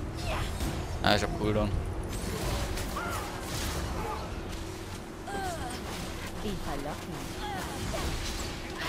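Game spell effects whoosh and zap in quick bursts.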